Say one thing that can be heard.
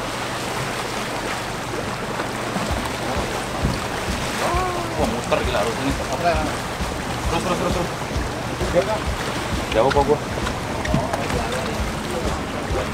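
Water sloshes against a boat hull.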